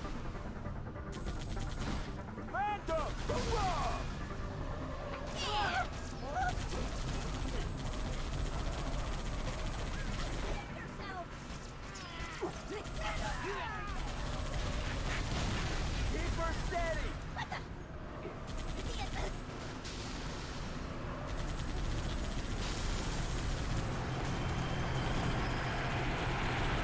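A mounted machine gun fires rapid bursts.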